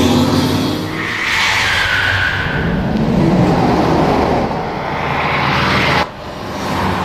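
A truck engine roars close by.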